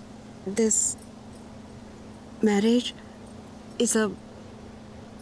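A woman speaks clearly in short, emphatic phrases.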